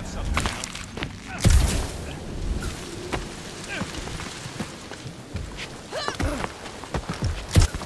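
Footsteps crunch on rock.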